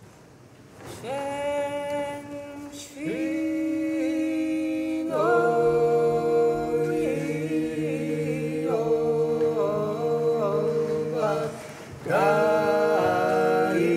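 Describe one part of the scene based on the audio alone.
A woman sings in a large echoing hall.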